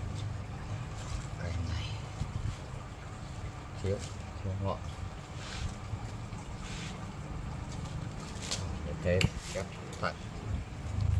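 Hands rustle and tap against a wooden branch.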